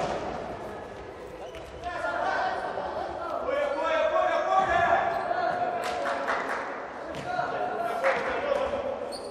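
Sports shoes squeak on a hard court floor.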